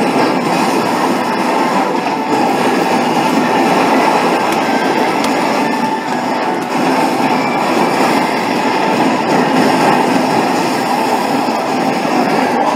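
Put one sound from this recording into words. Gunfire and blasts from an arcade game roar steadily through loudspeakers.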